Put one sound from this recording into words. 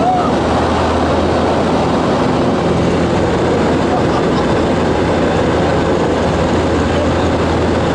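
A young man talks over a headset microphone.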